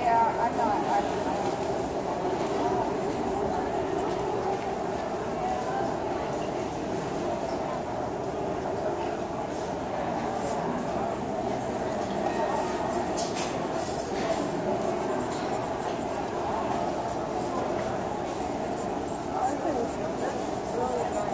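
A charcoal stick scratches and rubs on paper.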